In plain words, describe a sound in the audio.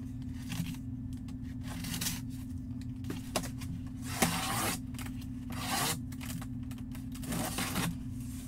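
Fingers tap on a cardboard box.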